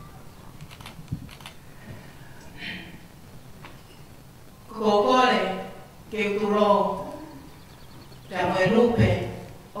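A middle-aged woman speaks calmly into a microphone, heard through a loudspeaker in a large room.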